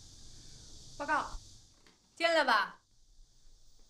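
A woman speaks sharply and clearly, close by.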